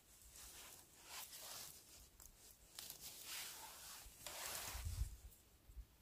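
Gloved fingers rustle through dry pine needles and leaves close by.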